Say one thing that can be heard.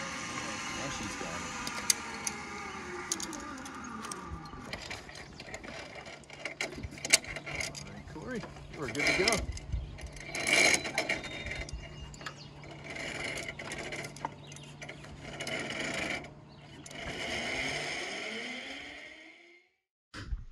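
A zipline pulley whirs along a cable.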